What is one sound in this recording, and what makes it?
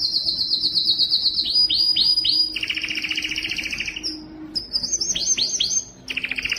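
A canary sings close by in rapid trills and swooping chirps.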